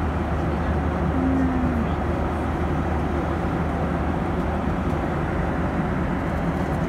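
A jet engine roars steadily inside an airplane cabin.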